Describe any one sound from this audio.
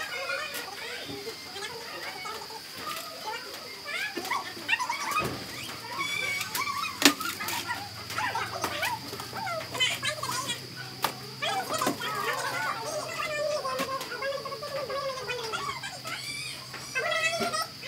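Women talk nearby in relaxed voices.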